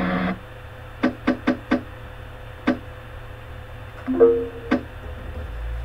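Menu selection beeps click in quick succession.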